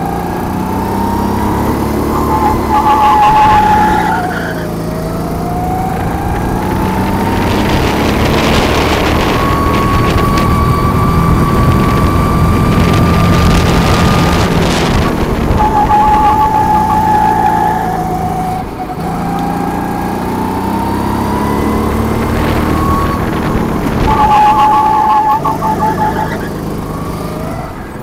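Wind rushes past loudly outdoors.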